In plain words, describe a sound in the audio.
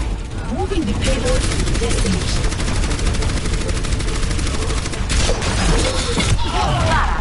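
Rapid gunfire rattles on and on.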